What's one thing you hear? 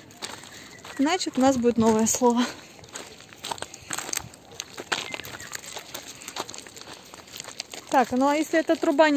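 A woman speaks to a dog in a high, coaxing voice close by.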